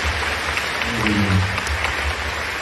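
A young man speaks briefly through a microphone.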